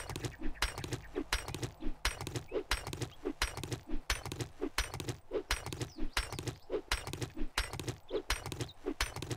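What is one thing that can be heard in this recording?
A stone axe chops repeatedly into a body with dull, wet thuds.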